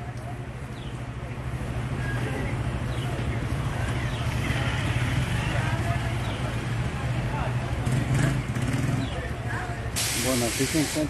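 A bus engine rumbles steadily nearby.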